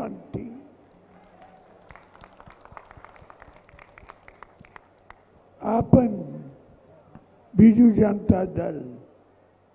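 A man speaks loudly and forcefully into a microphone.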